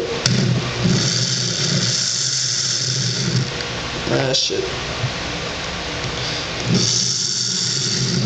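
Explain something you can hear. An electric drill whirs as it bores into a small block.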